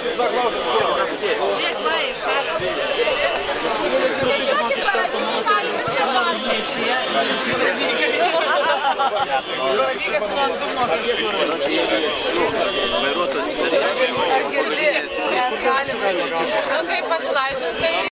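A crowd of men and women chatter outdoors nearby.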